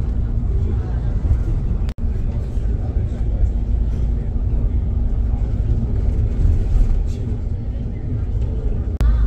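Tyres roll steadily on a smooth highway.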